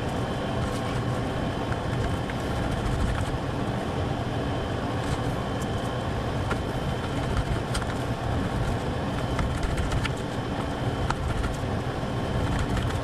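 Meat sizzles in a pan.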